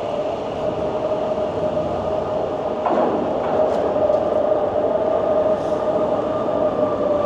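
Wind rushes past a moving rider outdoors.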